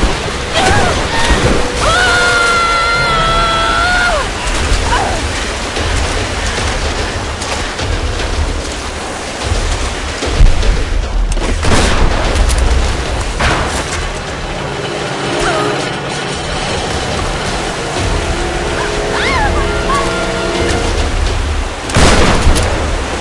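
Rushing water roars steadily.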